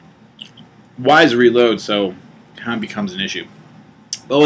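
A young man speaks casually into a nearby microphone.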